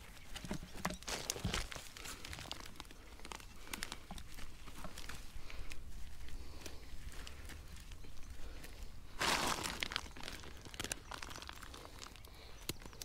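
Gloved hands pull and break apart roots, rustling and crackling in dry soil.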